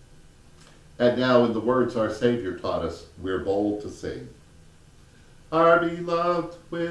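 An elderly man speaks slowly and solemnly into a microphone.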